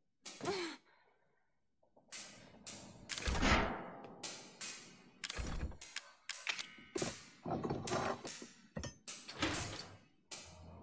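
A heavy metal hatch clanks and scrapes.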